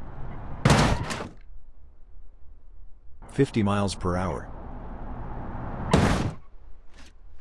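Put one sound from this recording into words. A car crashes hard into a metal post with a loud bang and crunch.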